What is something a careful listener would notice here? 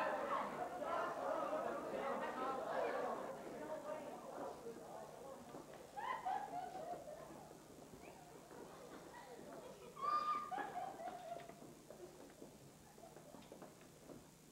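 Feet stomp and shuffle on a wooden stage.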